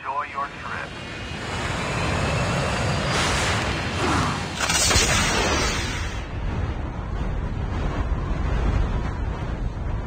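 A jetpack roars steadily in flight.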